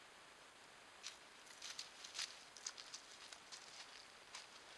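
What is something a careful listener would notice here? Paws shuffle and scrape on dry dirt and leaves close by.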